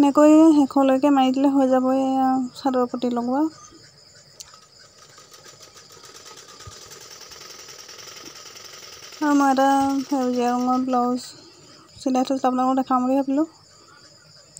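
A sewing machine runs with a humming whir in short bursts.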